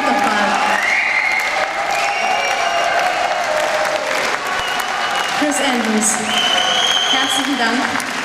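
A young woman speaks through a microphone over loudspeakers.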